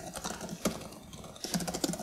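Fingers tap on a laptop keyboard.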